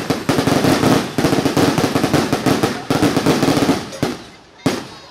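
Fireworks crackle and pop in a rapid burst.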